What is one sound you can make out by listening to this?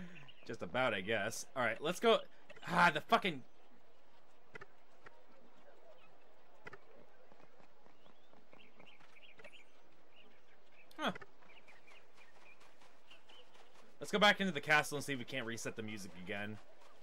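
Quick light footsteps patter on stone and grass.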